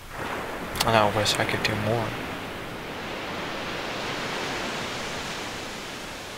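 Waves break and wash ashore steadily nearby.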